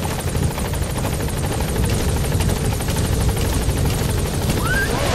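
A helicopter engine roars steadily.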